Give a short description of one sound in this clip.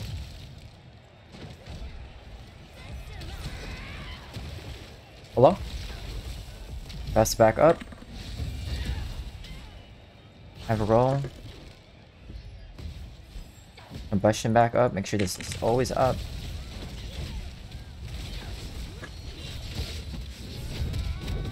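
Magic spells crackle and burst in a game.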